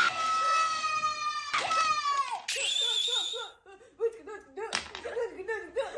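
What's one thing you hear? A young woman laughs heartily.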